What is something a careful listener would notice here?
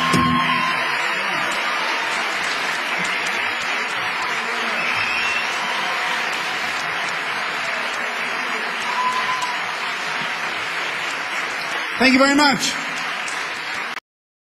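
A large audience claps and cheers loudly.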